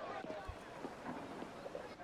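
A large crowd of men murmurs and shouts outdoors.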